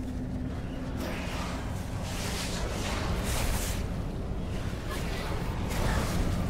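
Fiery magic spells whoosh and crackle in a fight.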